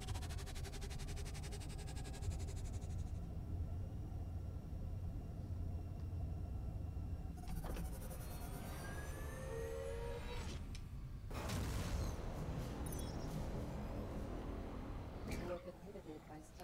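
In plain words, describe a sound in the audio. A spaceship engine hums with a low, steady roar.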